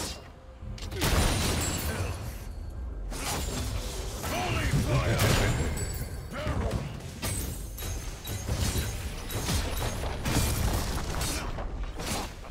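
Video game fight effects crackle, whoosh and clash rapidly.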